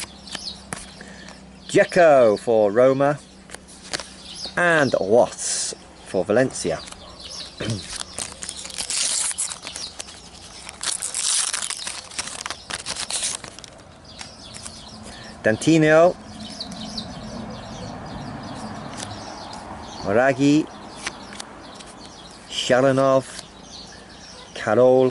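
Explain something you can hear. Paper cards flick and slide against each other.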